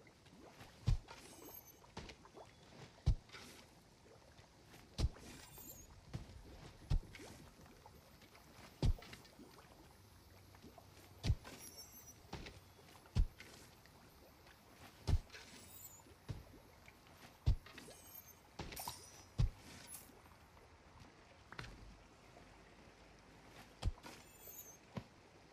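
Soft thuds sound again and again at an even pace.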